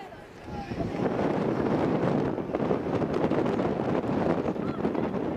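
A small crowd of spectators murmurs and calls out in the distance, outdoors.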